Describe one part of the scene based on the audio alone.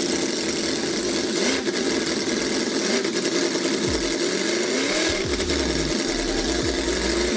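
A small model engine runs with a fast, buzzing rattle that rises and falls in pitch.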